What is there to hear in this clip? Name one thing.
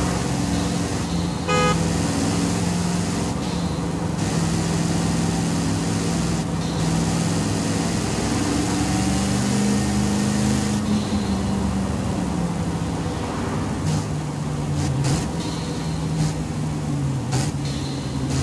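A car engine hums steadily, rising as it speeds up and dropping as it slows.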